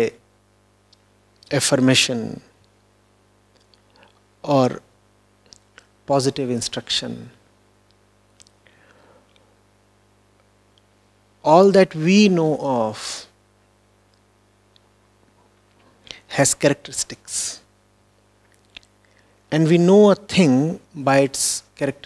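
A man speaks calmly into a microphone in short phrases with long pauses.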